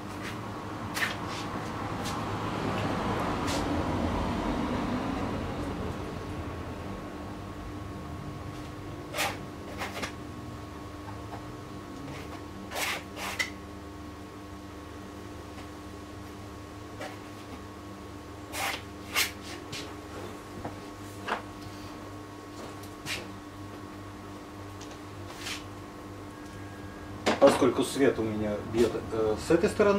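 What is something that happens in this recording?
A paintbrush scrapes softly on canvas.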